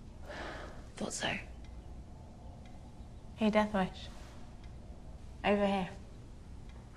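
A young woman speaks quietly nearby.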